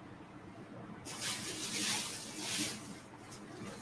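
Clothing rustles as a woman moves about close by.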